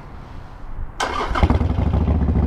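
A motorcycle engine starts up with a sudden roar.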